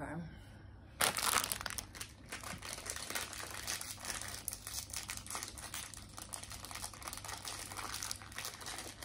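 Plastic packaging crinkles as it is unwrapped.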